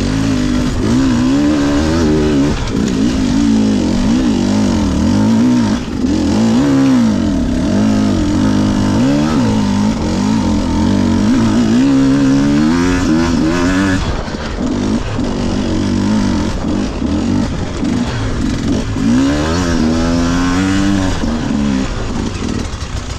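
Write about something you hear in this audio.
Tyres crunch over rocky ground.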